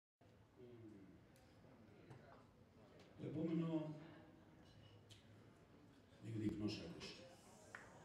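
A man speaks into a microphone, heard through loudspeakers in a large room.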